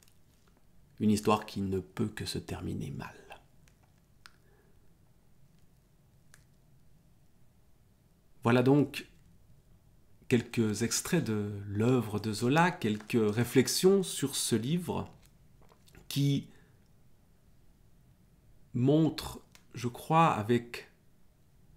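A middle-aged man speaks calmly and close, with pauses.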